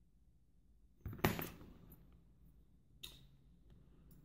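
Metal tweezers click as they pick up small pins.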